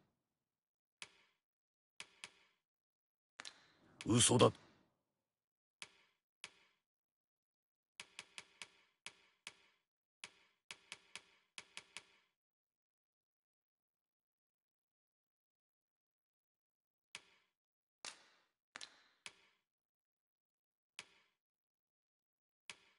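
Short soft menu clicks tick now and then.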